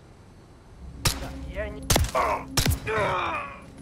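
A pistol fires a few sharp, loud shots.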